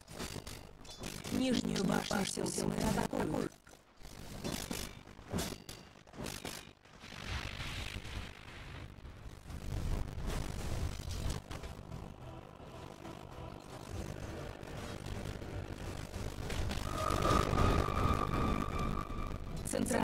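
Magic spells crackle and whoosh during a fantasy game battle.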